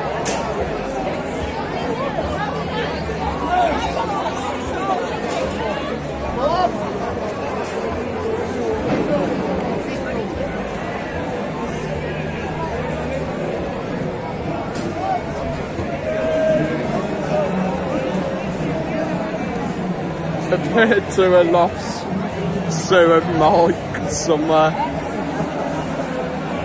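A dense crowd of men and women chatters and talks all around, outdoors.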